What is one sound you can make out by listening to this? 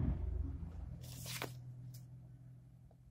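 A sheet of paper rustles and flaps as a page is turned.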